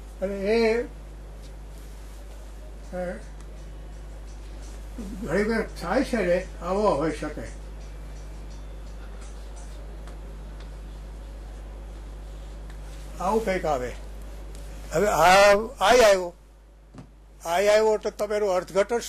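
An elderly man lectures calmly in short phrases with long pauses, close by.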